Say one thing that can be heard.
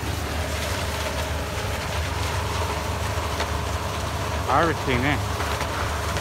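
A harvester engine rumbles steadily nearby.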